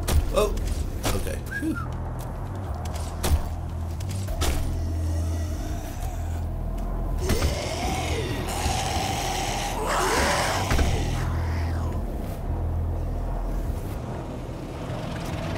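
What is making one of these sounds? Heavy footsteps clank on metal and rock.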